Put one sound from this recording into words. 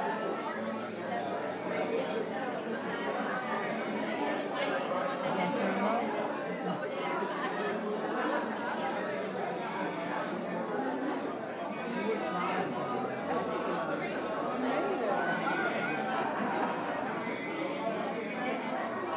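A crowd of adults chatter at a distance in a room.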